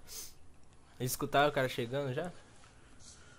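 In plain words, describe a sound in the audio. A young man speaks calmly and briefly into a microphone, close by.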